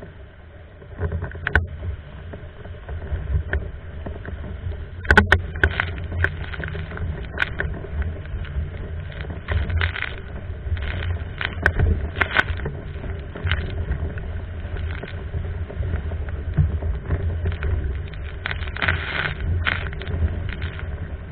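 Water splashes and slaps against a board.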